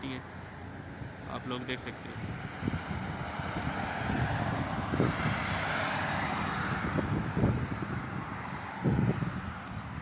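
Traffic hums steadily along a road outdoors.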